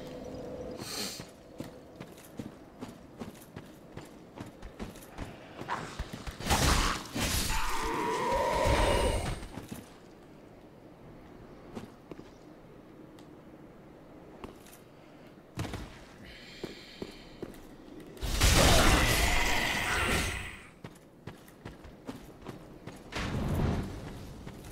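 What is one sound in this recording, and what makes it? Armoured footsteps crunch over rough ground.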